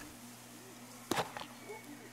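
A small box clatters as a hand grabs it.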